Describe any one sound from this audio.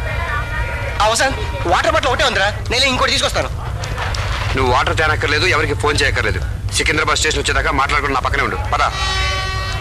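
A man talks animatedly at close range.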